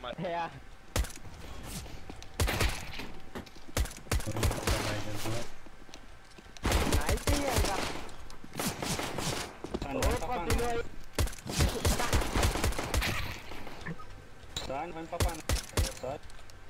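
Pistol shots crack in sharp bursts.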